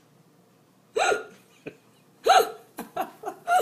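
A dog barks loudly nearby.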